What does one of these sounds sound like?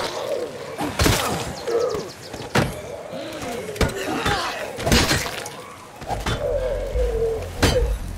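Zombies groan and snarl in a crowd close by.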